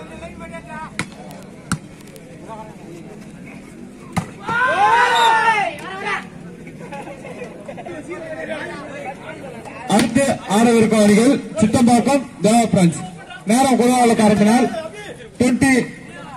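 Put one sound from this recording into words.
A volleyball is struck by hand with sharp slaps.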